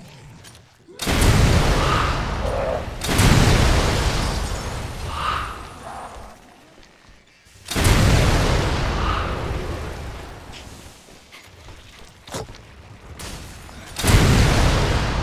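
A rocket launcher fires with a loud blast.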